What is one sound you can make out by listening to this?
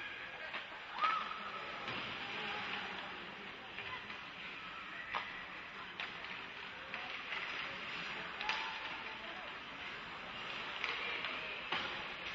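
Hockey sticks clack against the puck with sharp knocks.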